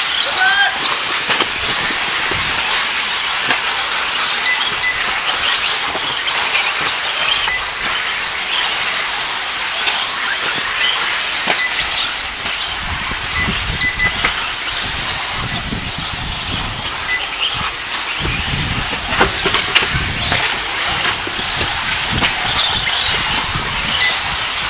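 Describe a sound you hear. Small electric motors whine loudly as model cars race over dirt.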